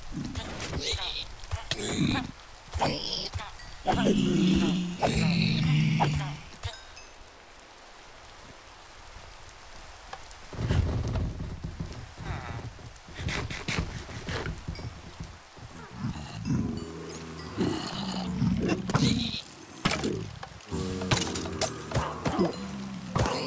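Blows strike creatures with sharp thuds.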